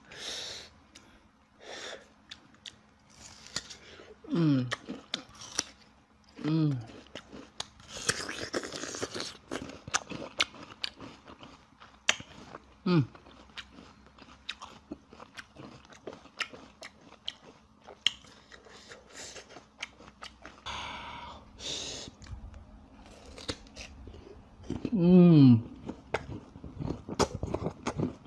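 A young man chews soft food wetly and smacks his lips close to a microphone.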